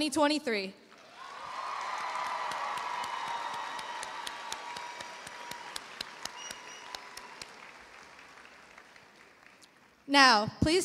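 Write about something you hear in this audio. An audience applauds and cheers in a large hall, then fades.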